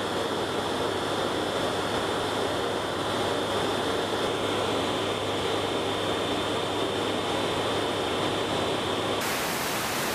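Aircraft engines drone loudly and steadily.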